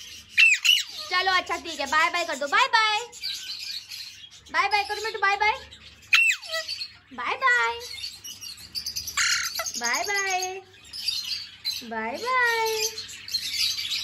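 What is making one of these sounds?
A parrot squawks and chatters in bursts close by.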